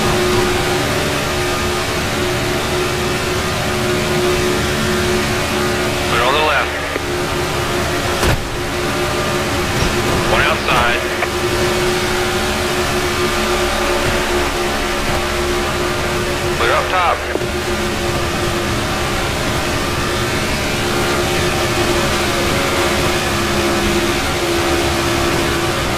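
Race car engines roar steadily at high speed.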